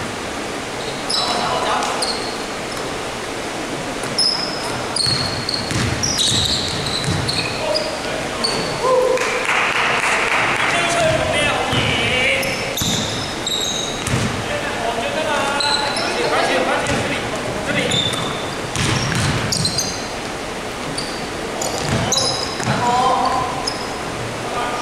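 Sneakers squeak sharply on a hard court floor in a large echoing hall.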